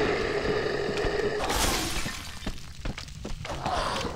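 A figure climbs a wooden ladder.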